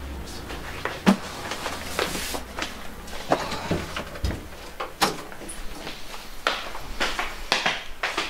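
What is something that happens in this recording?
A man's footsteps tap on a hard floor indoors.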